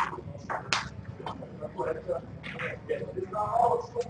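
Snooker balls click together on a table.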